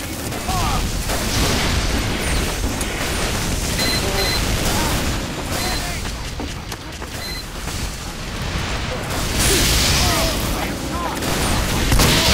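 A flamethrower roars in a video game.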